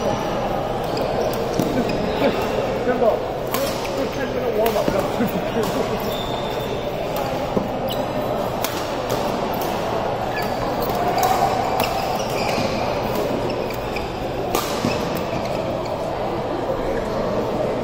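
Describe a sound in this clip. Shuttlecocks are struck with sharp pops by rackets in a large echoing hall.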